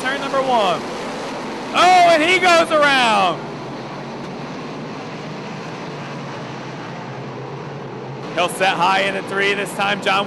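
Race car engines roar around a dirt track.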